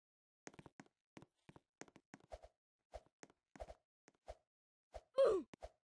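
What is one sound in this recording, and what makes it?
Quick game footsteps patter on a hard surface.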